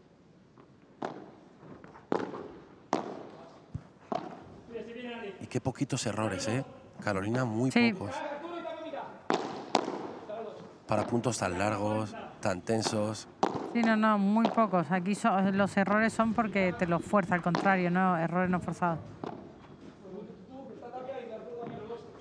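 Rackets strike a ball back and forth in a rally.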